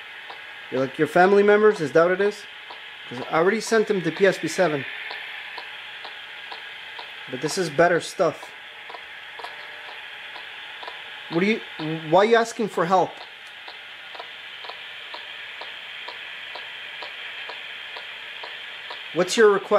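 A phone plays faint music through a small speaker.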